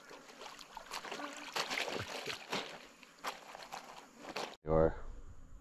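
Water splashes as a man handles something in shallow river water.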